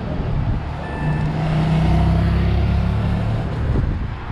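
A motorcycle engine roars past.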